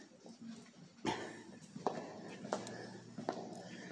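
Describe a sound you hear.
Footsteps click on a tile floor.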